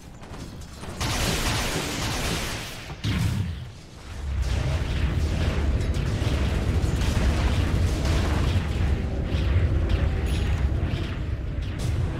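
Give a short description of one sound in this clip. Spell blasts and hits crackle and boom in a game battle.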